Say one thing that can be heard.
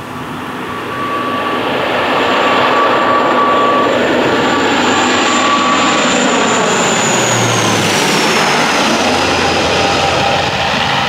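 A propeller airliner roars loudly overhead, its engine whine dropping in pitch as it passes.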